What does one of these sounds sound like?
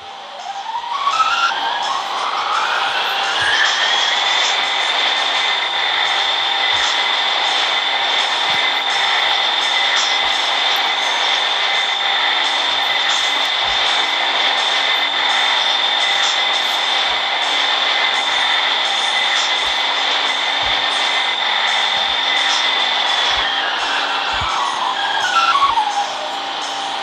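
A subway train's electric motors whine, rising in pitch as the train speeds up, holding steady, then falling as it slows to a stop.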